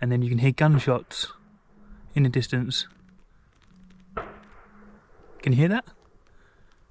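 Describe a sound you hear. A man speaks close up with animation, in short bursts.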